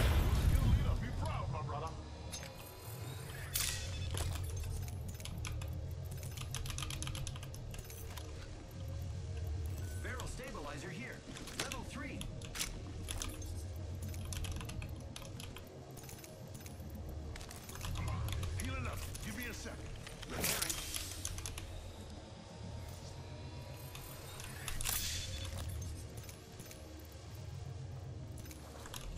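A mouse clicks.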